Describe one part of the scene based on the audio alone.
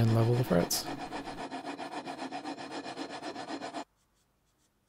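A hand rubs briskly back and forth on wood.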